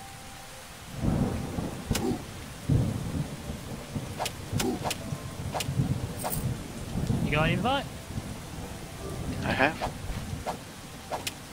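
A sword swishes and strikes creatures in a game.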